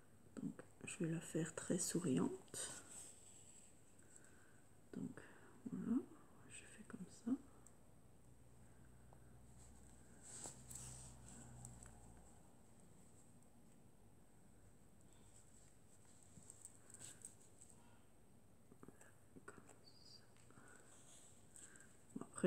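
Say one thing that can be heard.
Yarn rustles softly as it is pulled through a crocheted toy.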